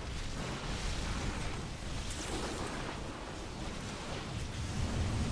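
Laser beams fire and crackle in rapid bursts.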